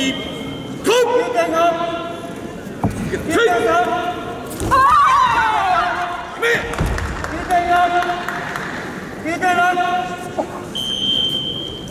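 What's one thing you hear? A man referee calls out commands in a large echoing hall.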